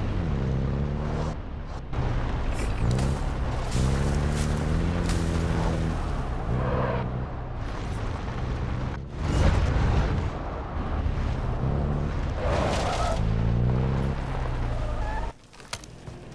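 A truck engine revs and rumbles as the truck drives.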